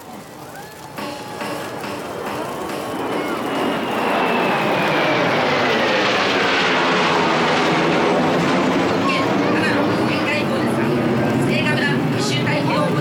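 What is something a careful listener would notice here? A jet aircraft roars overhead, its whine dropping in pitch as it passes.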